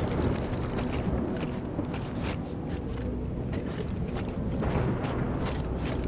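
Heavy boots crunch through snow.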